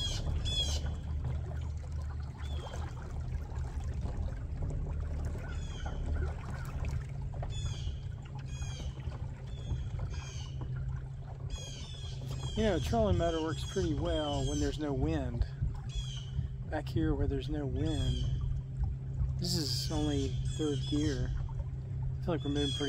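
Water laps softly against a boat's hull.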